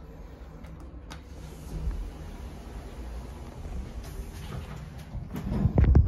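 Lift doors slide open.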